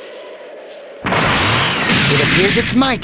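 A powerful energy blast whooshes and booms.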